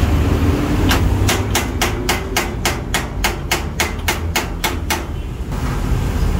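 A ratchet wrench clicks rapidly.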